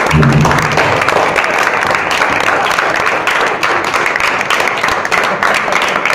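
A group of teenage boys claps their hands.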